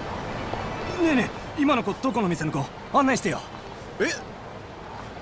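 A young man talks with animation.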